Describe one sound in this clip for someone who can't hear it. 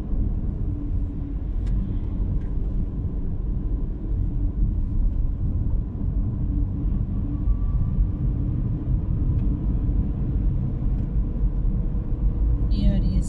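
Tyres roll over the road with a low, steady rumble.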